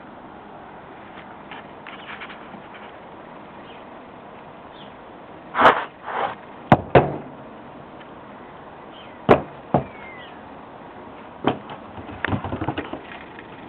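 A dog's paws patter and thump on wooden boards.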